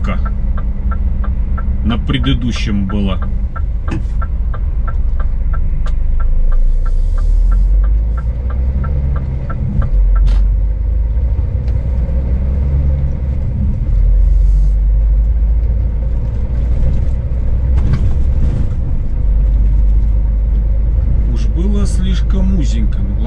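A vehicle engine rumbles low and steady while driving.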